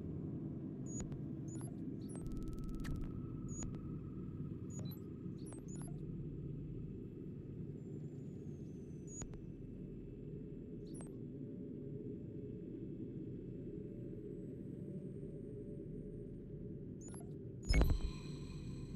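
Soft menu ticks sound now and then as a game map scrolls.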